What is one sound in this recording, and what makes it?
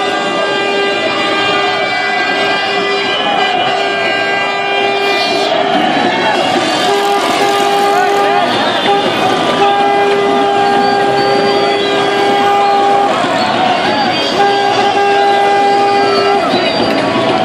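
A car horn honks in long, repeated blasts.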